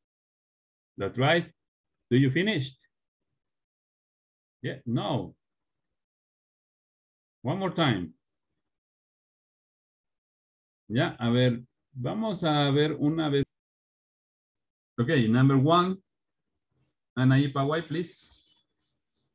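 A young man speaks in short phrases over an online call, with pauses between them.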